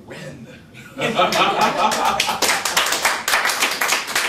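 A group of people applaud loudly.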